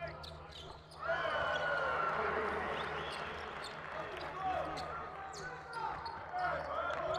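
A large indoor crowd roars and cheers.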